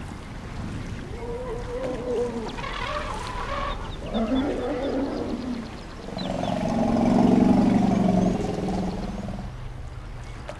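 Elephants rumble and call close by.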